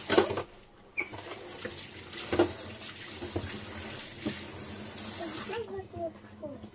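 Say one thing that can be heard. Water runs from a tap and splashes.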